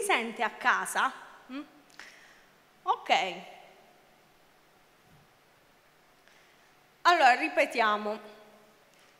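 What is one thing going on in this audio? A young woman speaks with animation into a microphone, heard through loudspeakers in a large echoing hall.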